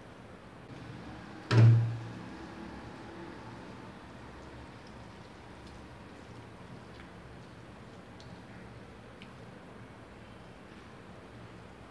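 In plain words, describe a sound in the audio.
A boy mixes rice and curry with his fingers on a metal plate.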